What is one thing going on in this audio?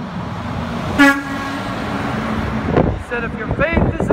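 A large truck rushes past close by with a roar of wind and tyres.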